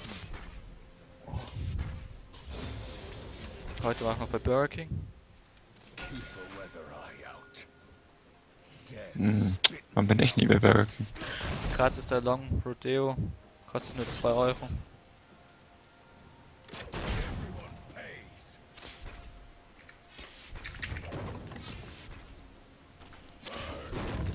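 Spells and weapon hits clash in a game fight.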